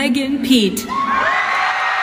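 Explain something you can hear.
A young woman shouts with joy.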